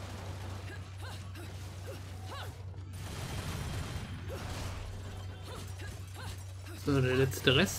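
Magical blades swish and whoosh through the air.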